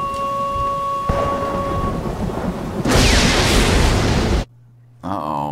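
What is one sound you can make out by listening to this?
Heavy rain pours down steadily and then stops abruptly.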